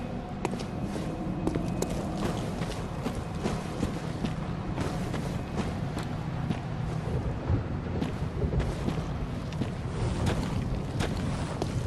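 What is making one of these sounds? Footsteps crunch on rough ground at a steady walking pace.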